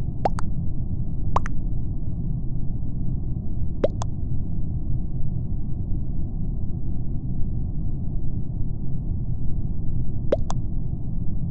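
Short electronic blips sound as new chat messages arrive in a game.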